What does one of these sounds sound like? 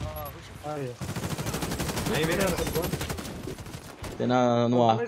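An assault rifle fires a rapid burst.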